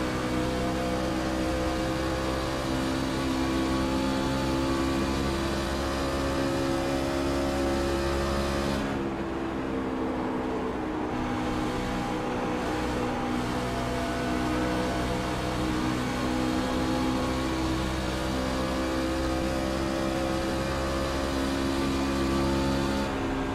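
A V8 race truck engine roars at full throttle.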